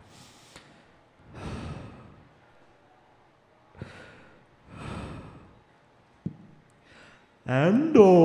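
A young man murmurs softly into a microphone, with pauses.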